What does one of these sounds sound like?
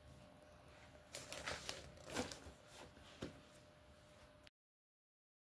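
A book's pages rustle as they are turned.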